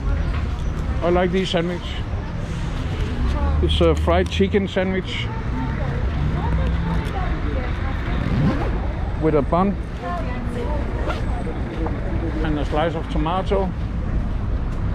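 Adults talk in short bursts nearby outdoors.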